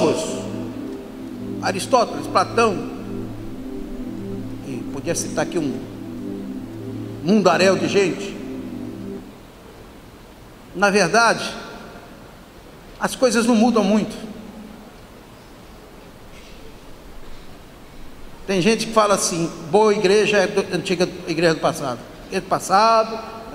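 A middle-aged man speaks with animation through a microphone and loudspeakers, in bursts with pauses.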